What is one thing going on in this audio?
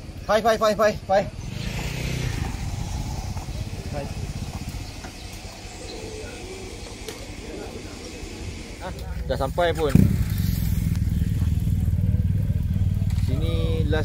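Motorcycle engines idle nearby.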